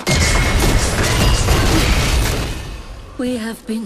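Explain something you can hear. A magical blast roars and crackles loudly, then fades.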